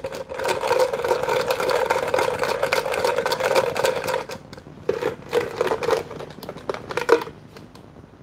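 Small objects rattle inside a jar being shaken.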